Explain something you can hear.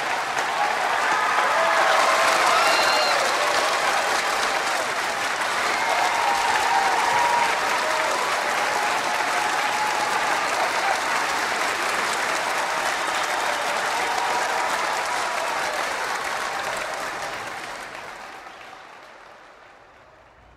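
A crowd claps and cheers loudly in a large hall.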